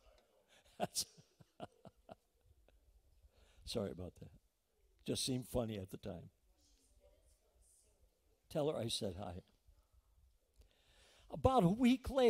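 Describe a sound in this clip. An older man speaks slowly and calmly into a microphone in a large room, pausing between phrases.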